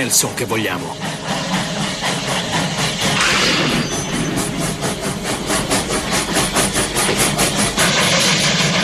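A steam locomotive chugs rhythmically.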